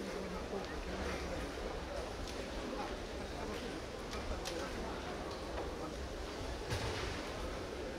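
A crowd of men and women murmurs and chats in a large echoing hall.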